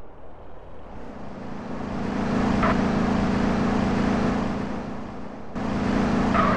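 A car engine hums as a car drives off.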